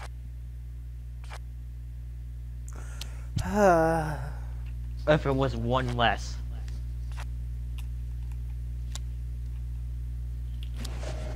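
Playing cards slap down onto a pile.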